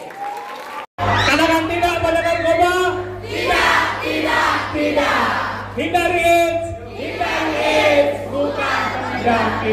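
Young people sing a chant together through a loudspeaker.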